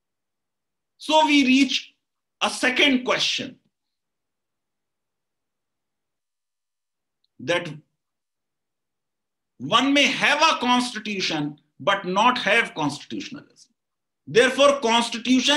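A middle-aged man talks with animation over an online call, pausing between phrases.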